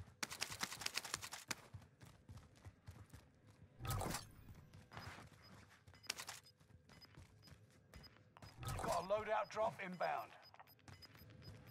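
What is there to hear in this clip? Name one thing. Quick footsteps thud on a hard floor.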